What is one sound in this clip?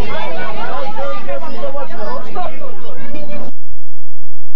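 A crowd of men and women talk loudly close by.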